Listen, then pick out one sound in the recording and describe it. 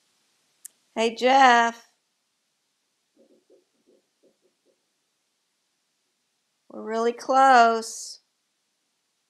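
A parrot calls out loudly in short, pitched squawks.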